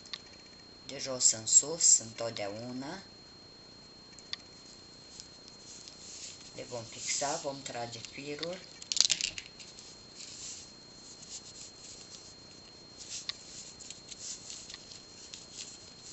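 Small beads click softly against one another.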